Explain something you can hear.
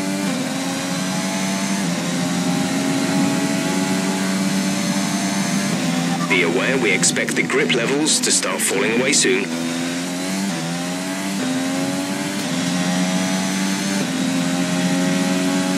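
A racing car engine screams at high revs, its pitch climbing and dropping sharply with each gear change.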